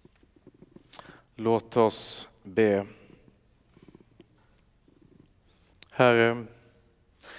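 A man sings in a low voice through a microphone, echoing in a large hall.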